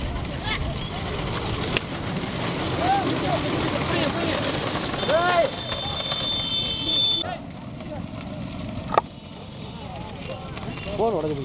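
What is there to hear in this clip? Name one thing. Hooves clatter on a paved road.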